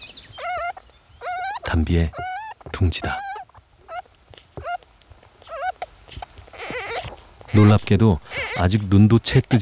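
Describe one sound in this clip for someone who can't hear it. Baby animals squeak softly in a nest.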